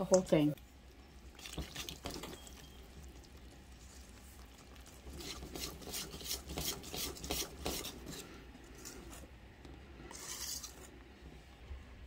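A wire whisk beats batter in a metal bowl with quick scraping clinks.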